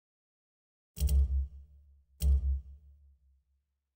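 Menu clicks sound briefly.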